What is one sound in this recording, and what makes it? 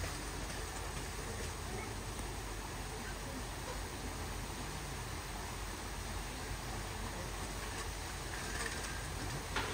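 A baby elephant scrapes and shuffles through soft sand.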